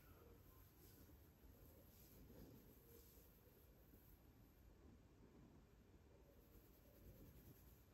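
Fingers rub and scratch through hair close by.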